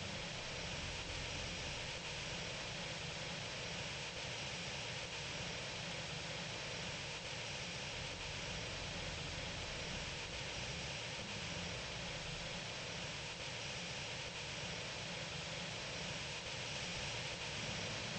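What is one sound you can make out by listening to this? A jet airliner's engines roar steadily.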